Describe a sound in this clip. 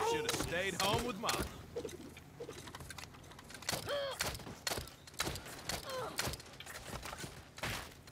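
Guns fire in quick bursts of sharp shots.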